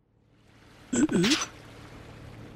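A man pants heavily, close by.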